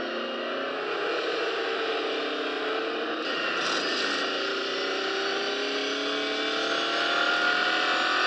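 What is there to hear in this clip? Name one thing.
A racing car engine roars at high speed, its pitch slowly rising as it accelerates.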